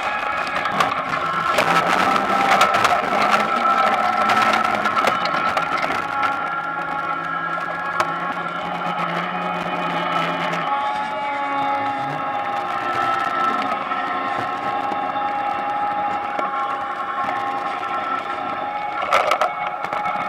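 A potato harvesting machine runs with a steady whine and rattle.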